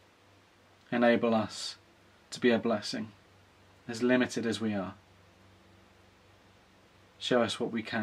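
A man speaks calmly and close to the microphone, in short phrases with pauses.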